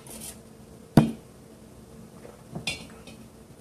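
A glass clinks against another glass.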